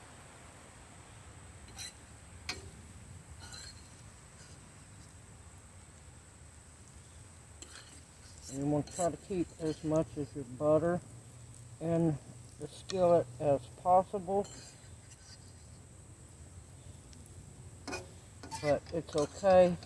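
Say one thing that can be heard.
Metal tongs clink against a frying pan.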